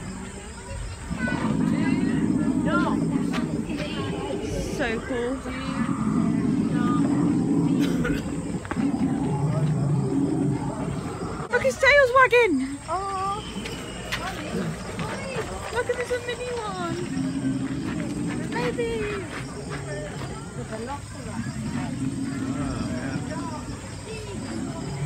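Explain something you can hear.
A dinosaur model growls with a deep, drawn-out rumble, again and again.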